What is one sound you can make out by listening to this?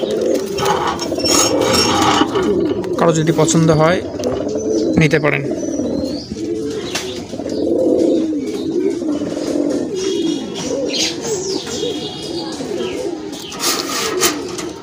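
Pigeons coo in low, throaty warbles close by.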